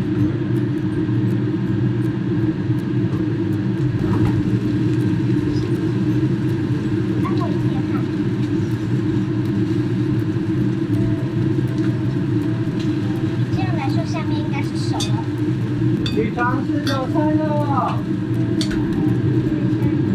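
A utensil scrapes and taps against a pan.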